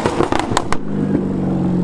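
A sports car engine pops and crackles loudly.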